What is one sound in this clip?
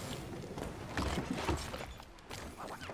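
A bicycle crashes to the ground with a thud.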